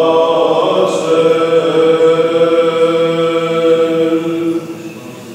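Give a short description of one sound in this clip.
A man chants in a slow, steady voice in a reverberant space.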